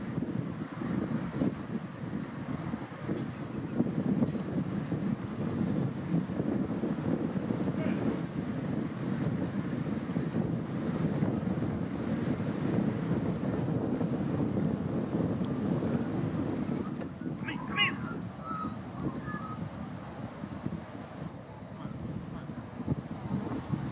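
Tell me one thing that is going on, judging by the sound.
A flock of sheep tramples and rustles through long grass, close by.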